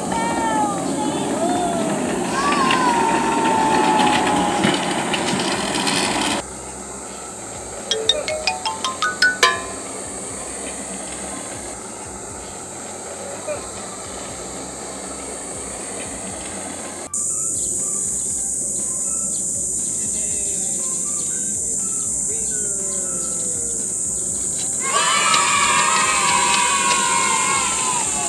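Plastic carts rumble and scrape over concrete.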